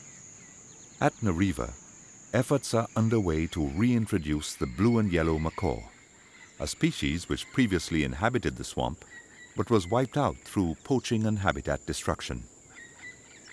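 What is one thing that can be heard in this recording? Macaws squawk loudly and harshly.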